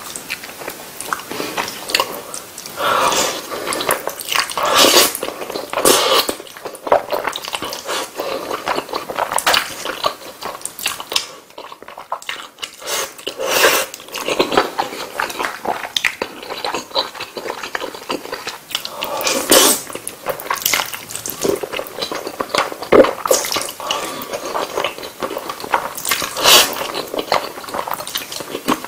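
A man chews food wetly, close to the microphone.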